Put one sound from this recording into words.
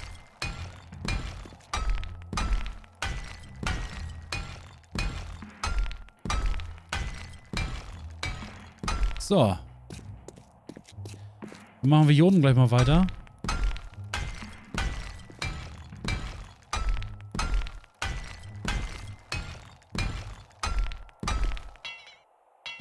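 A hammer strikes metal in quick repeated blows.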